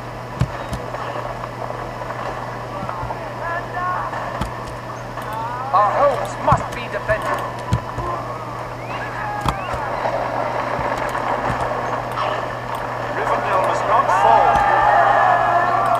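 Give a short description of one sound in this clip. Horses' hooves gallop across the ground.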